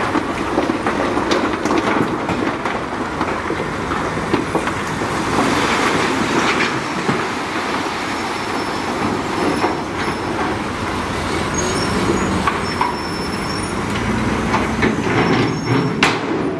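Rocks rumble and clatter as they slide out of a dump truck.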